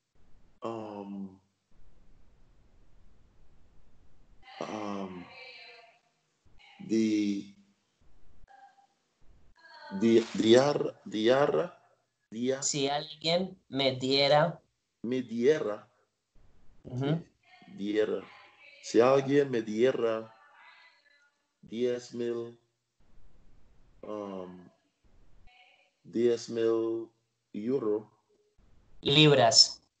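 A man explains calmly, heard through an online call microphone.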